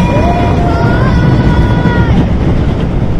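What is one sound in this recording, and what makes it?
Metal wheels screech against the rails.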